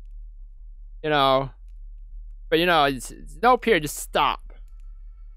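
A young man speaks animatedly into a close microphone.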